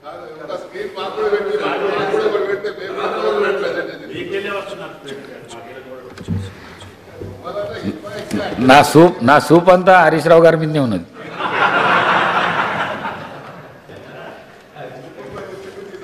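Men murmur and chatter together in a large hall.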